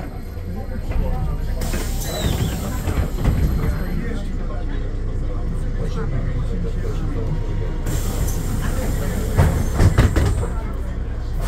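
The bus interior rattles and clunks over the road.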